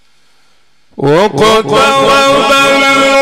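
An older man chants loudly and with feeling into a microphone, heard through loudspeakers with a long echo.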